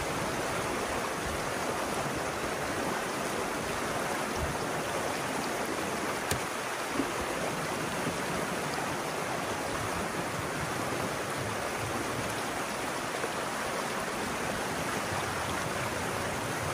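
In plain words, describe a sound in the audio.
Water rushes and splashes steadily through a narrow gap close by.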